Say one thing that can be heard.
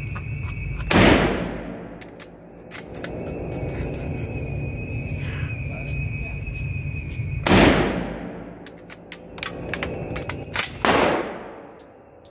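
A rifle fires loudly, booming in an echoing hall.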